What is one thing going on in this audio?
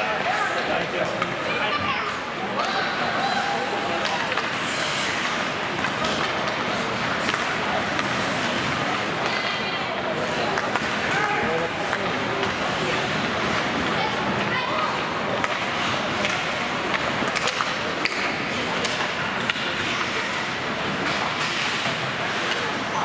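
A crowd of spectators murmurs and calls out in an echoing arena.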